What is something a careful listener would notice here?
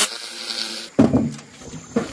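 Heavy stone blocks thud against a metal wheelbarrow.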